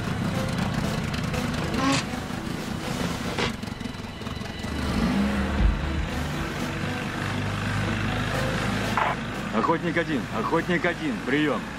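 A motorboat engine hums steadily.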